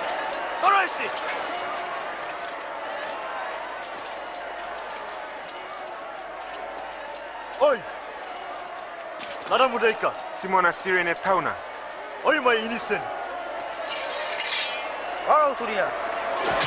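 A man shouts loudly nearby.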